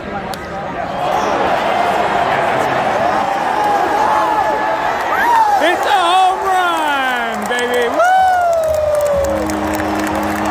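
A stadium crowd cheers loudly and roars.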